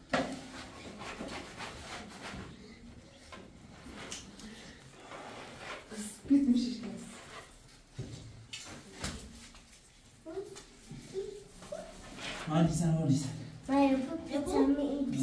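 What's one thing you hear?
A trowel scrapes plaster across a wall.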